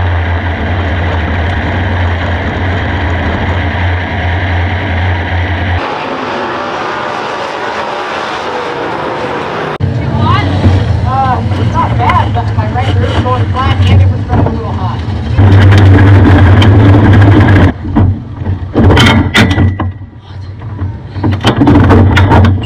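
A race car engine rumbles steadily up close.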